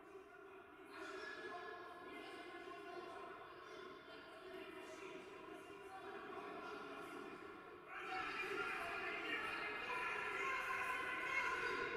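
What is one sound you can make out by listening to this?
Several men argue loudly with one another in an echoing hall.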